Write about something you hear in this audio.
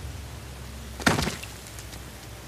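A woman lands on a stone ledge with a loud thump.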